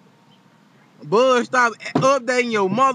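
A young man speaks loudly and with animation close to the microphone.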